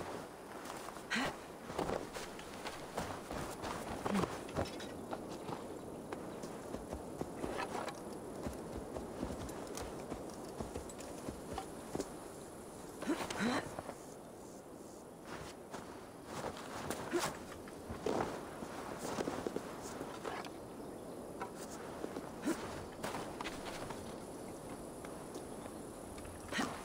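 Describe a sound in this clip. A young man talks casually and closely into a microphone.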